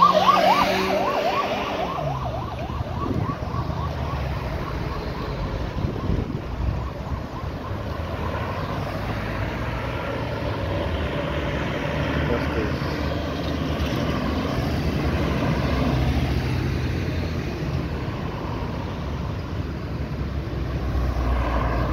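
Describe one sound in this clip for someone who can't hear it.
Cars and vans drive past close by, tyres rolling on asphalt.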